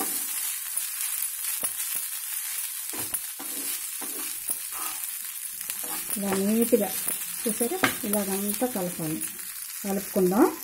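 A spatula scrapes and stirs rice in a frying pan.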